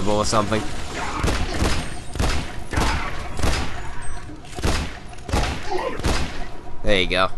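A pistol fires in quick, sharp shots.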